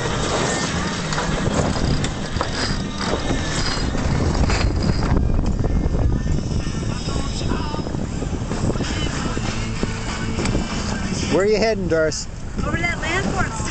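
A winch clicks as a man cranks it.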